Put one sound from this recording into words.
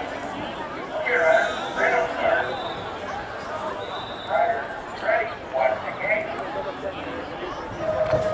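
Young riders talk and call out nearby outdoors.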